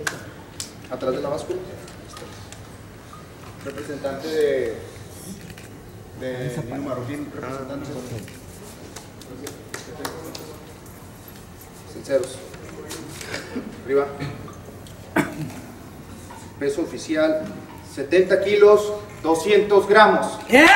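A man announces through a microphone with animation in an echoing room.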